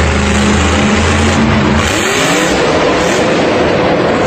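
A monster truck crushes a car with a metallic crunch.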